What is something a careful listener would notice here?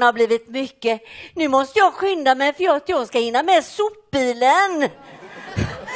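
An elderly woman speaks loudly in a high, quavering voice.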